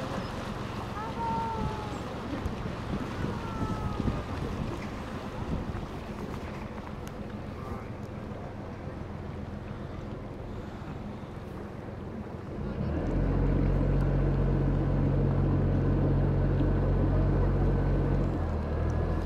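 Water laps against a moving boat.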